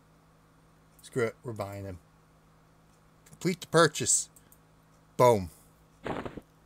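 A man speaks casually into a close microphone, in short bursts.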